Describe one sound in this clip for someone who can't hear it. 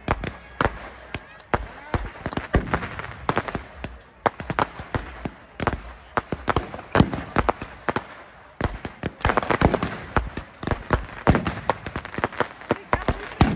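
Fireworks bang and crackle loudly outdoors.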